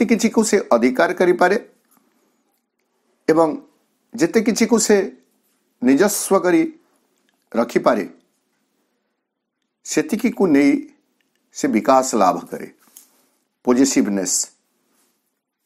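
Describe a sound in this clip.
A middle-aged man speaks calmly in short phrases, close to a microphone.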